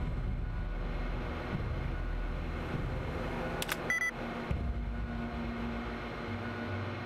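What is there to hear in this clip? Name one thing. A computer terminal hums low and steadily.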